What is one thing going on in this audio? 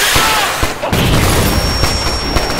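A loud explosion booms and debris rattles down.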